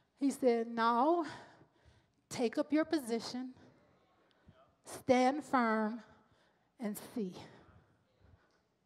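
A woman sings with feeling into a microphone, heard through loudspeakers in a reverberant hall.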